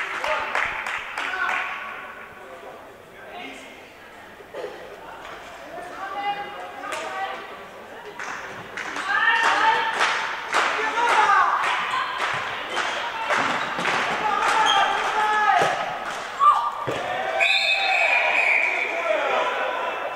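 Young women shout to each other across an echoing hall.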